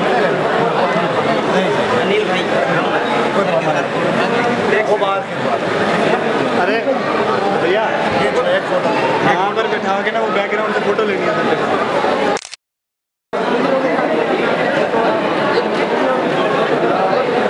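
A crowd of men chatter and talk over one another close by.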